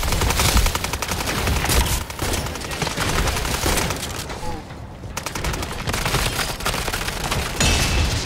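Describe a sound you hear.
A gun fires rapid bursts of shots.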